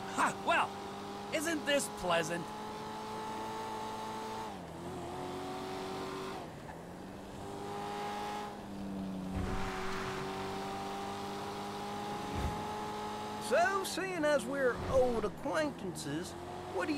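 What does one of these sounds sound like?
A sports car engine hums steadily and shifts gears.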